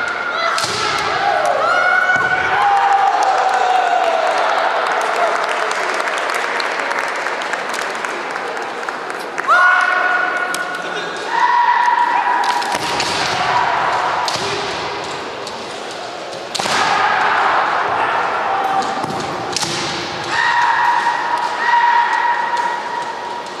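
Kendo fighters let out long, loud shouts that echo through a large hall.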